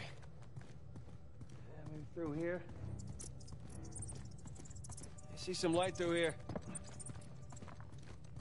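Footsteps scuff on stone in a narrow passage.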